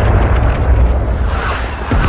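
An explosion booms outdoors.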